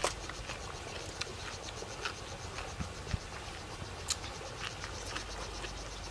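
Crisp vegetables crunch between teeth.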